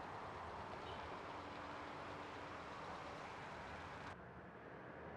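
A car rolls past.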